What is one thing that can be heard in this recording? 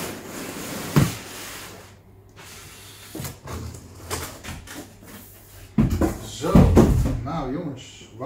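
Foam packing knocks and thumps on a table.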